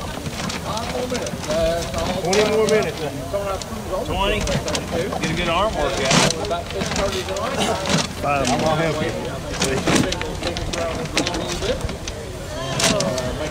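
Paper tickets rustle and tumble inside a turning plastic drum.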